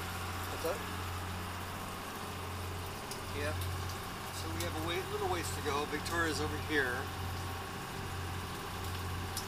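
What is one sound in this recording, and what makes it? A boat engine hums steadily.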